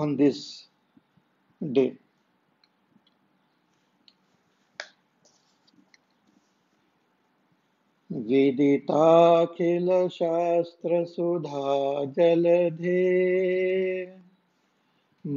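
A middle-aged man speaks and chants in a steady, drawn-out voice close to a microphone.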